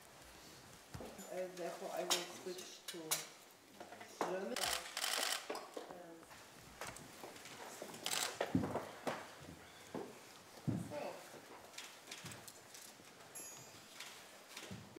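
Men and women murmur and talk quietly around a table in a room.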